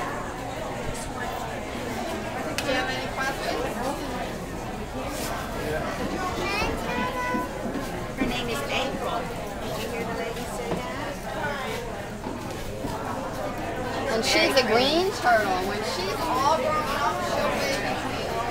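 Young children chatter and call out excitedly nearby.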